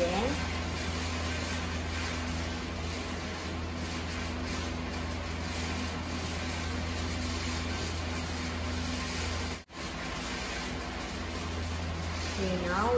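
Food sizzles and crackles in a hot frying pan.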